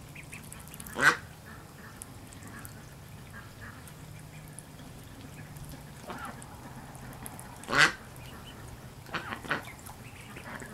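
Ducklings give short quacks.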